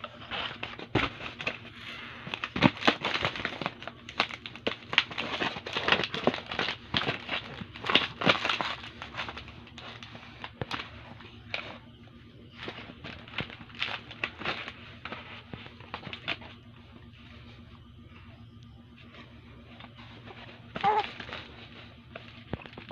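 A foil balloon crinkles and rustles as it is handled.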